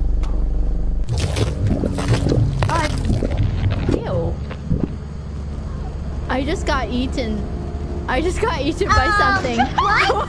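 Young women talk and exclaim with excitement through microphones.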